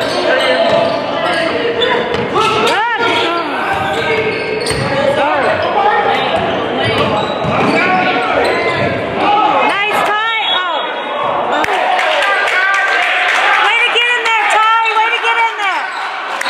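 A basketball thumps as it bounces on the court.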